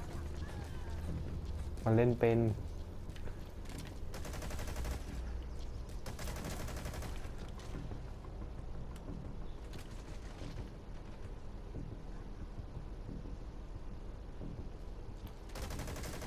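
Footsteps crunch quickly on gravel.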